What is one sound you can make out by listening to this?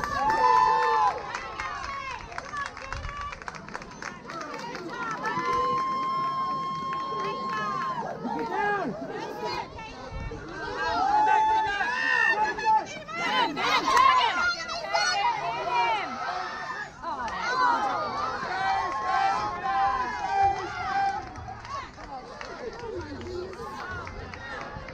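Children and adults shout and cheer nearby outdoors.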